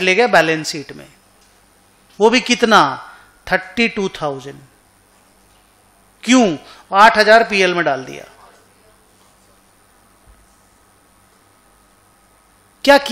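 A man speaks calmly into a microphone, explaining in short bursts with pauses.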